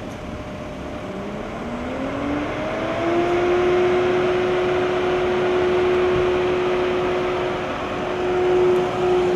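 A car engine starts, revs up and then hums steadily close by.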